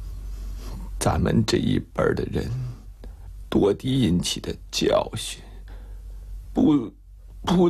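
A middle-aged man speaks weakly.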